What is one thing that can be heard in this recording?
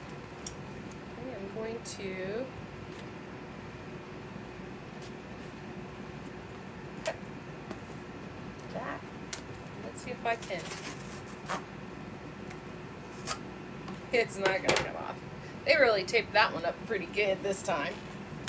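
Paper rustles and crinkles in a woman's hands.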